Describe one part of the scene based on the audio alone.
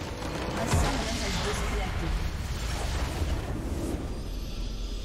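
A massive crystal structure shatters in a loud, rumbling explosion.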